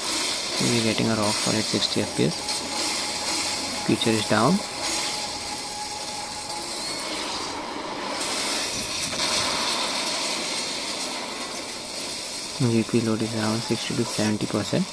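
Loud explosions and fiery blasts rumble from a video game.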